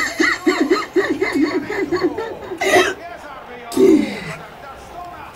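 A man sobs and wails loudly up close.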